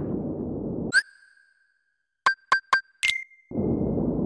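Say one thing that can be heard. Short electronic chimes beep as a menu is used.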